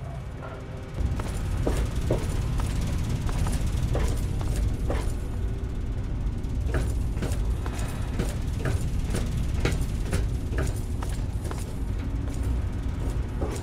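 Machinery hums low and steadily.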